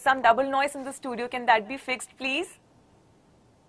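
A young woman speaks brightly into a close microphone.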